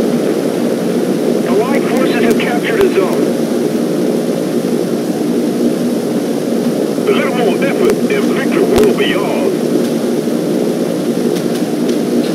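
The twin piston engines of a propeller aircraft drone.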